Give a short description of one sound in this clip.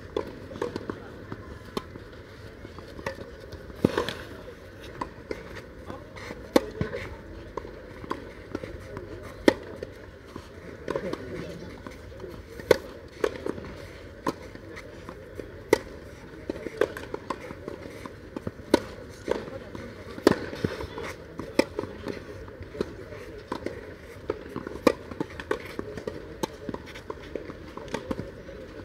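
Tennis rackets strike a ball with sharp pops, back and forth.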